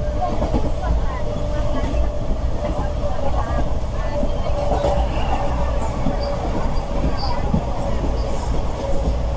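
A train rumbles and rattles along the tracks at speed.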